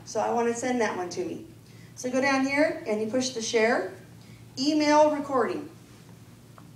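A woman speaks into a microphone through a loudspeaker in a large room.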